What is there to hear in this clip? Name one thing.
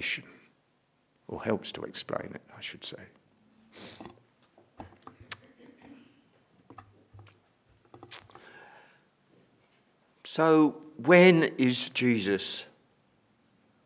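An elderly man speaks calmly and with emphasis into a microphone.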